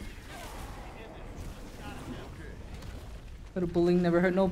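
Magic blasts whoosh and crackle in quick bursts.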